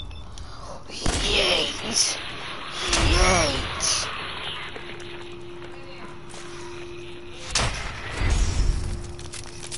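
Pistol shots ring out with sharp echoing bangs.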